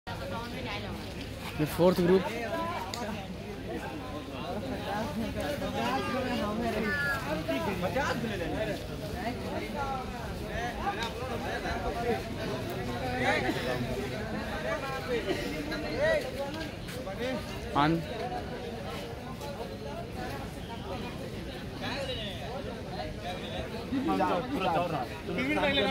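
Young men talk and call out to each other nearby, outdoors.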